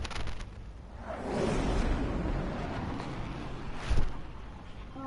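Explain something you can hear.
Jet planes roar past overhead.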